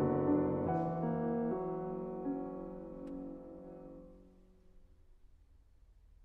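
A piano plays softly and its notes ring out and fade.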